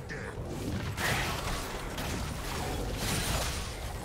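Game spells whoosh and crackle during a fight.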